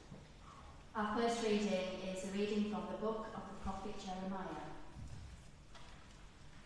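A woman chants aloud in a large echoing hall.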